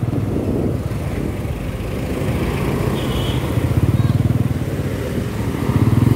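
Motorcycle engines idle and rev close by.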